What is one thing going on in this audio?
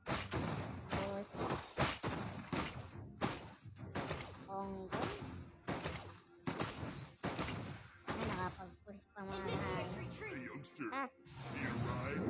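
Game sound effects clash and bang in quick bursts.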